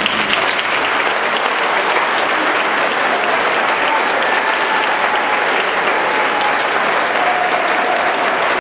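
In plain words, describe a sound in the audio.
An audience applauds steadily in a large echoing hall.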